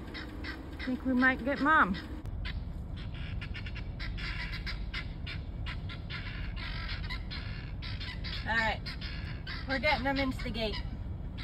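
Ducks quack nearby.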